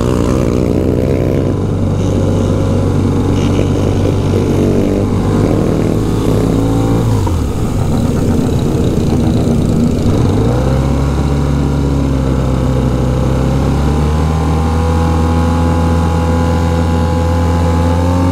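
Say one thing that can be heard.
A motorcycle engine hums steadily up close, its pitch dropping and rising as it slows and speeds up.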